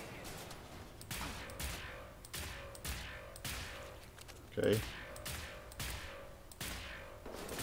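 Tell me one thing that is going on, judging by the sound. A gun fires several quick shots.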